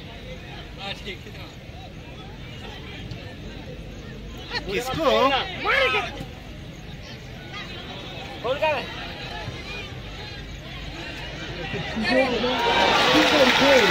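A large crowd of spectators shouts and cheers outdoors, swelling loudly toward the end.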